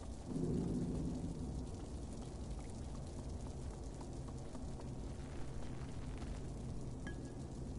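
Small footsteps patter on wooden floorboards.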